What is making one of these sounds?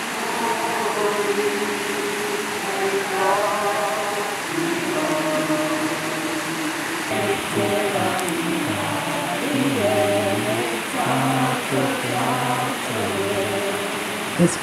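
A river rushes over stones nearby.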